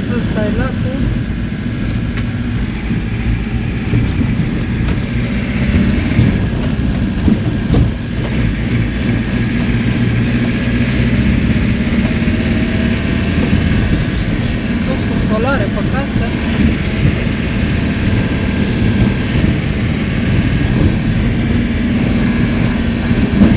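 A vehicle engine rumbles steadily at low speed.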